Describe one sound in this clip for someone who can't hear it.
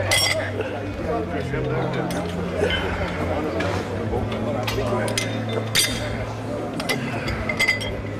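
Metal weights clink and clatter on a hard floor.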